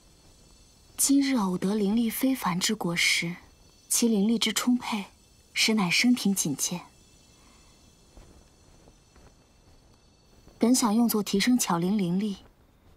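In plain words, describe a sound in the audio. A young woman speaks calmly and thoughtfully, close by.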